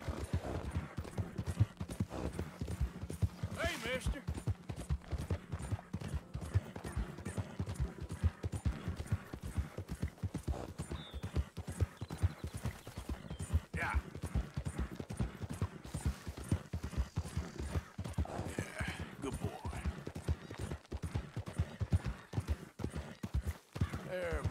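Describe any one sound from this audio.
A horse gallops with hooves pounding on a dirt trail.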